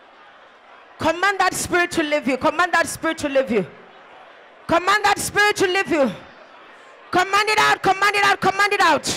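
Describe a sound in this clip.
A woman sings loudly into a microphone in long, sustained phrases.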